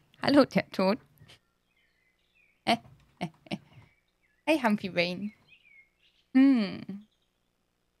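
A young woman talks animatedly into a close microphone, in short bursts.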